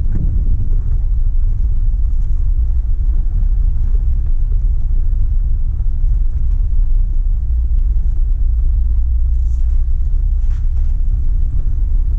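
Wind rumbles low and steady outdoors.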